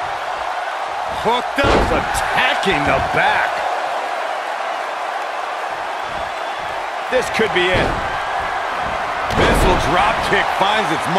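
A large crowd cheers and roars steadily in a big echoing arena.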